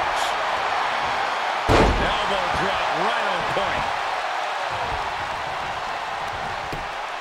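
A large crowd roars and cheers steadily in a big arena.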